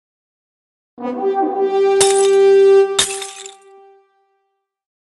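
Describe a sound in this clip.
A short cheerful game fanfare plays with ringing tones.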